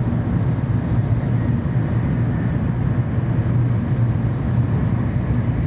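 A train rumbles along at speed with a steady low roar.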